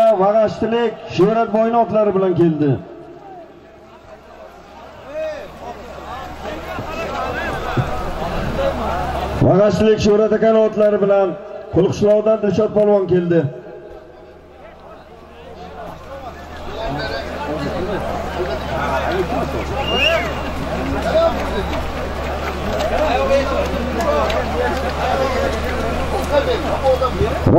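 A large crowd murmurs and calls out outdoors.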